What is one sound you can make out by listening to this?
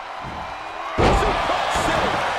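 A wooden table smashes with a loud crash.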